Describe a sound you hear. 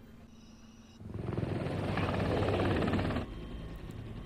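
A helicopter roars overhead.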